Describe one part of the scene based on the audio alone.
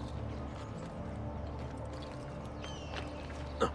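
Soft footsteps patter across roof tiles.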